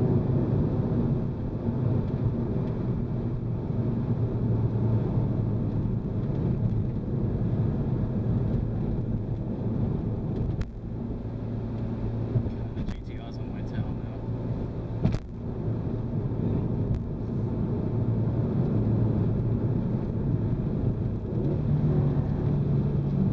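Tyres roll over the road with a low, steady rumble.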